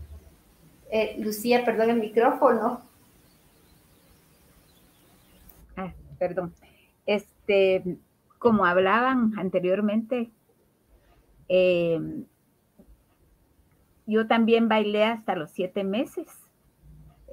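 A middle-aged woman speaks warmly over an online call, in short bursts with pauses.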